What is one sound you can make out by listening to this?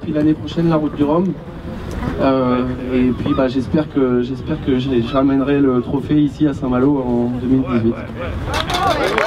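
A man speaks with animation into a microphone, heard through a loudspeaker outdoors.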